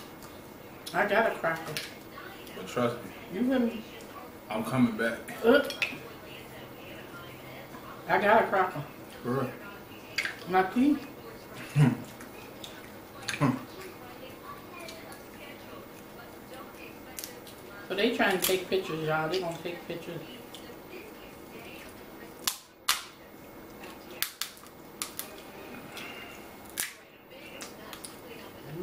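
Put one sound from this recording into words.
Crab shells crack and snap as hands break them apart.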